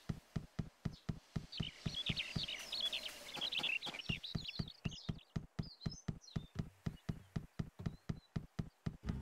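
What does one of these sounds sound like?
Quick footsteps patter on stone paving.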